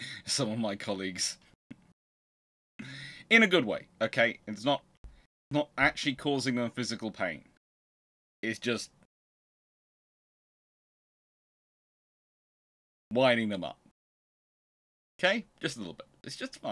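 A man talks with animation close to a microphone, with pauses.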